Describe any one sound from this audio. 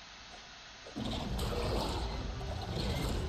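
A huge creature growls deeply and loudly.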